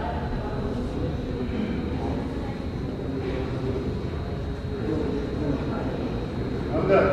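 A crowd murmurs and chatters in a large echoing hall.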